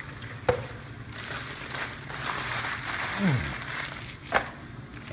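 Paper wrappers rustle and crinkle.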